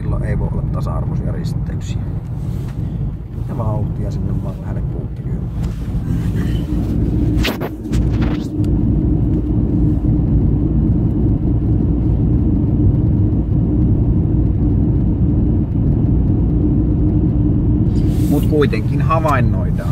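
Tyres rumble steadily on a road.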